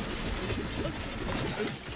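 Flames burst and crackle loudly.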